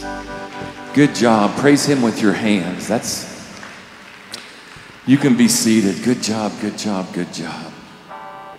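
A man speaks with animation over a loudspeaker in a large echoing hall.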